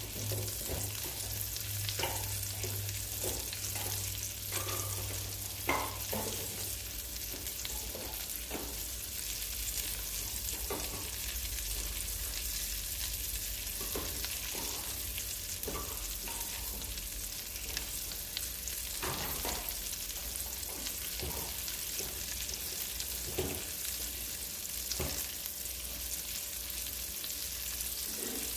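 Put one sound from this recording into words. Oil sizzles and crackles steadily in a frying pan.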